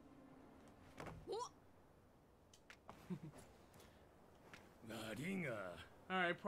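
A man talks and laughs with animation into a microphone.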